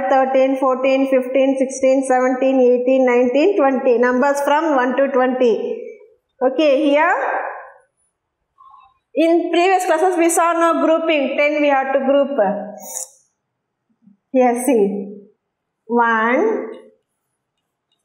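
A woman speaks clearly and slowly in a sing-song teaching voice, close by.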